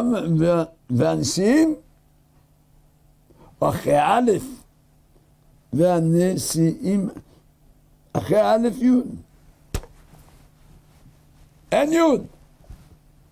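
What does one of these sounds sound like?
An elderly man speaks slowly and expressively into a microphone, with long pauses.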